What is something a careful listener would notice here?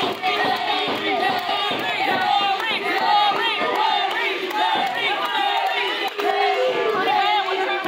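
A woman shouts excitedly close by.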